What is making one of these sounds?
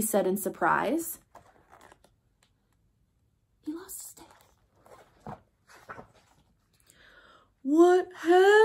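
A young woman reads aloud close by, with expressive changes in her voice.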